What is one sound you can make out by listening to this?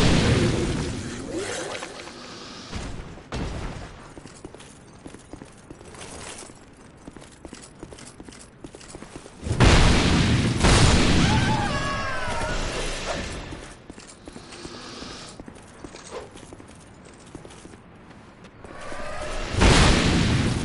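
Heavy sword blows slash and thud against enemies.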